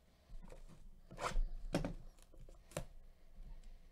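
A cardboard box taps and scrapes as gloved hands turn it.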